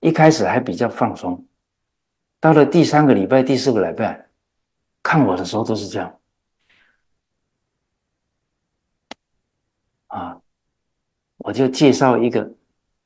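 An elderly man speaks calmly and with animation into a close microphone, in short phrases with pauses.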